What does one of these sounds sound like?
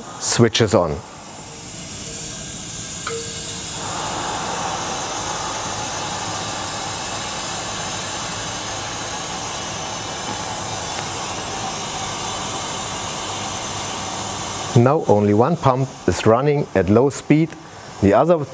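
A water pump starts up and runs with a steady whirring hum.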